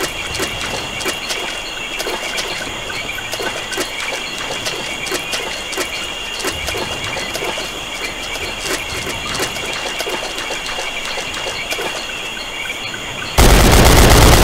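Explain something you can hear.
Footsteps tramp on soft ground.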